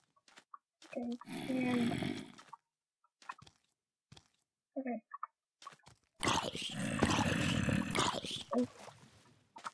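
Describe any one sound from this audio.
A monster groans in short, low bursts.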